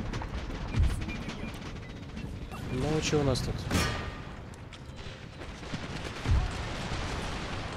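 A battle rumbles with the clash and din of many soldiers fighting.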